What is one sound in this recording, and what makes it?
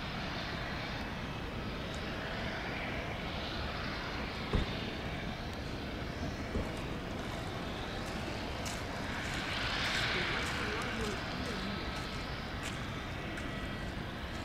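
A jet airliner's engines roar steadily as the plane approaches to land, growing louder.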